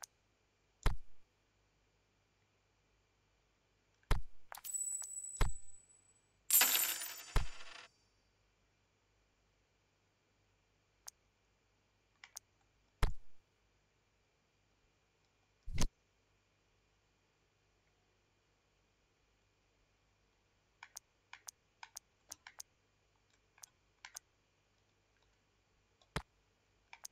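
Short electronic menu clicks and chimes sound now and then.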